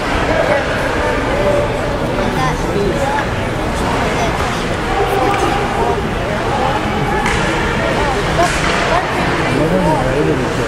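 Players call out to each other across a large echoing rink.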